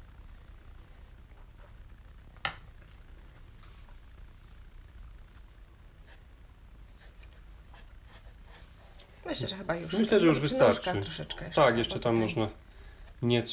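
A pastel stick scratches softly across paper.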